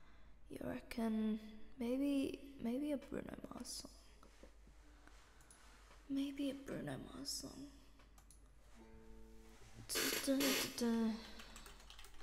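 A young woman speaks casually and close to a microphone.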